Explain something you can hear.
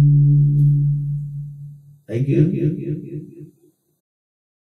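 A middle-aged man sings into a microphone, heard through a loudspeaker.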